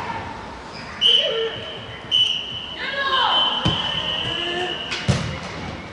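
A referee's whistle blows several sharp blasts, the last one long.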